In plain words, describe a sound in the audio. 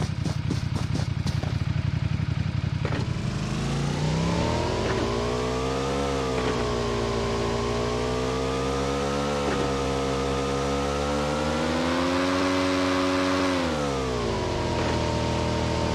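A motorcycle engine idles and then revs up, its pitch rising and falling as it speeds along.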